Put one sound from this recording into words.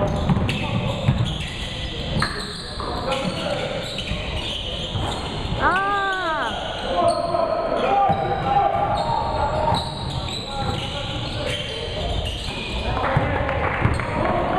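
A basketball bounces on a hardwood court in an echoing gym.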